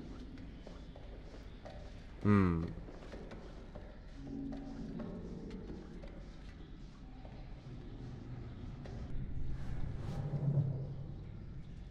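Footsteps clank on a metal grating.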